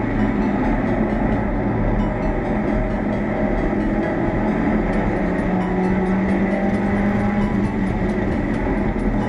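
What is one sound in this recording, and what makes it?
Wind rushes past the open car.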